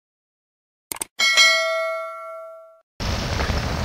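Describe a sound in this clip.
A bright chime rings out and slowly fades.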